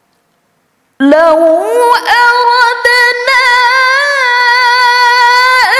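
A young woman recites in a melodic chanting voice through a microphone, with a slight echo.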